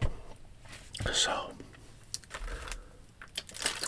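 A young man speaks softly close to a microphone.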